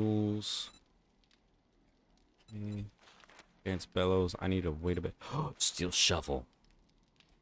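A young man talks animatedly into a close microphone.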